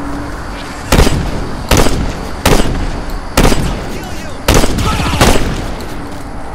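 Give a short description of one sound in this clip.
Gunshots boom loudly, one after another.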